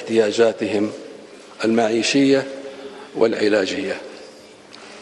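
A man speaks calmly into a microphone in short phrases.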